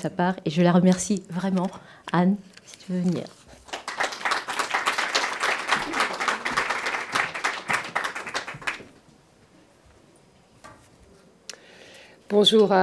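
A middle-aged woman speaks warmly into a microphone in a hall.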